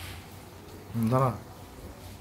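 A young boy speaks briefly, close by.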